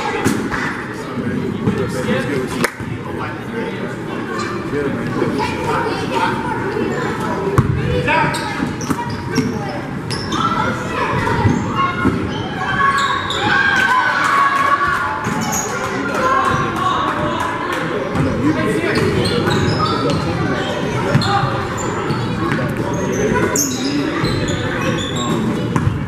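Spectators chatter and call out from the sidelines.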